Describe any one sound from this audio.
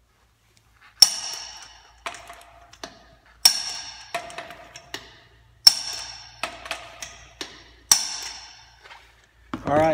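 A metal wrench clanks and rings against a wheel's lug nuts.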